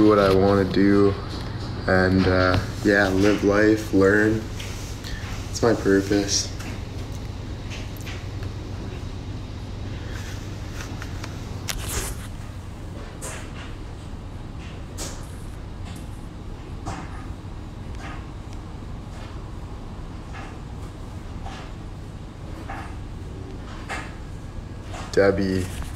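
A young man talks casually and close up into a phone microphone.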